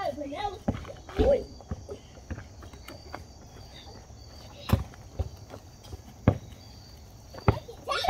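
A basketball bounces on hard ground outdoors.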